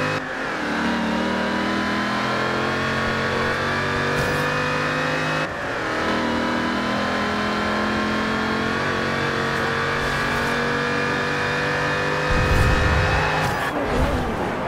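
A racing car engine roars loudly, climbing in pitch through the gears.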